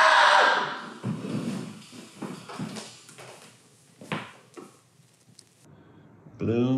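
Footsteps and bumps sound as a man moves about.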